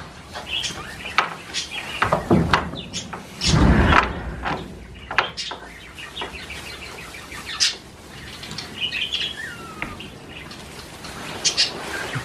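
Hay rustles as an armful is carried in.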